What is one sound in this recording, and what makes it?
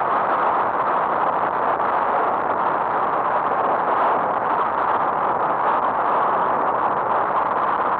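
Tyres roll on the road surface with a steady rush.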